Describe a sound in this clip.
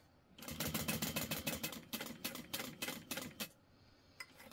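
A sewing machine runs quickly, stitching with a rapid rattle.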